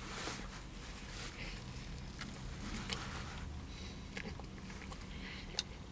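A man chews food noisily.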